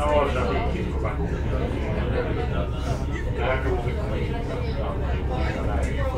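Train wheels clatter on the rails.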